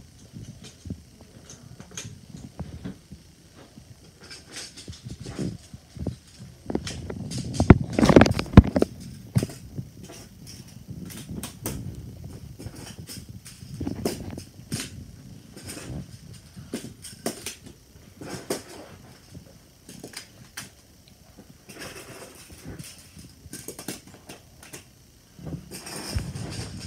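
Plastic magnetic tiles click and clack together close by.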